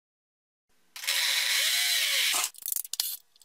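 A cordless drill whirs.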